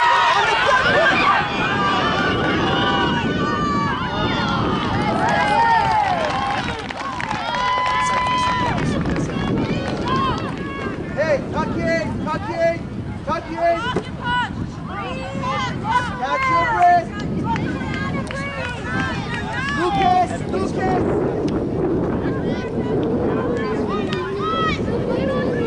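Young players shout and call to each other outdoors across an open field.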